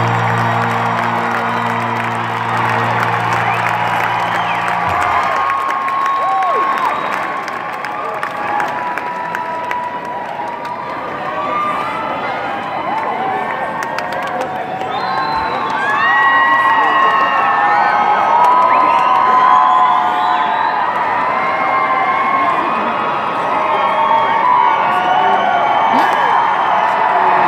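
A large crowd cheers and whistles in a large echoing hall.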